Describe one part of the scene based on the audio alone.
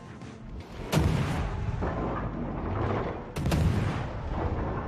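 Shells burst in splashes against a warship.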